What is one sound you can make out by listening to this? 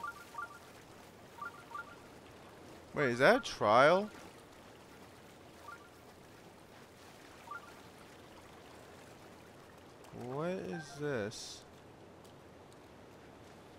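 Feet splash while wading through shallow water.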